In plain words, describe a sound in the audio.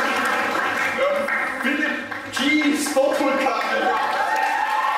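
A man speaks loudly to a crowd.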